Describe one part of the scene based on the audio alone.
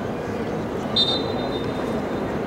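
A referee's whistle blows once, sharply.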